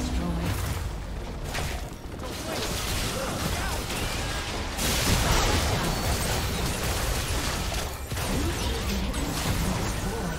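Explosions boom as a tower is destroyed.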